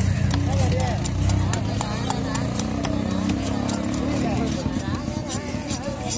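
A knife scrapes scales off a fish with quick rasping strokes.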